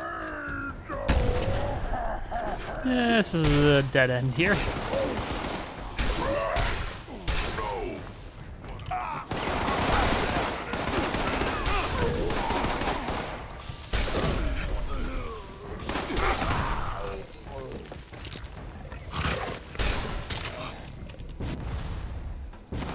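Guns fire in rapid bursts with sharp cracks.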